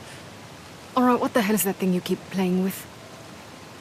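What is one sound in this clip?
A young woman asks a question.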